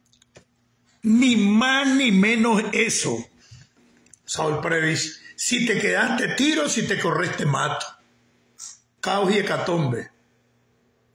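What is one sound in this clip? An elderly man talks calmly and close up, in short bursts with pauses.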